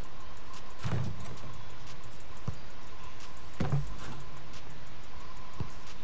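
A football is kicked with a few dull thuds.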